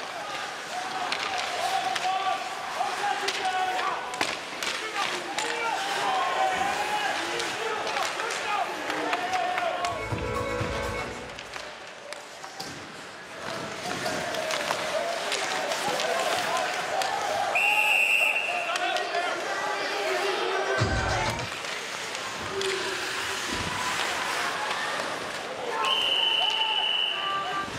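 Hockey sticks clack against a puck and each other.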